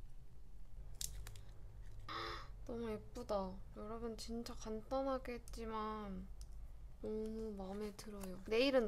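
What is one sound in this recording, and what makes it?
A paper card rustles and taps as it is handled.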